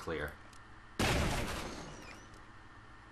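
A door is blasted open with a loud bang that rings out.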